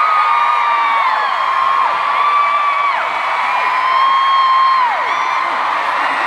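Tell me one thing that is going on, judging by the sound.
A large crowd sings along in long held notes that drop off.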